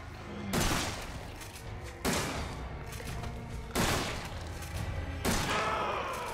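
A shotgun fires loudly, again and again, with echoing booms.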